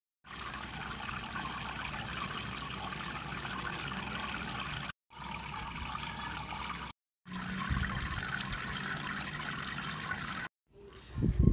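Water splashes and bubbles steadily as it pours into a tank.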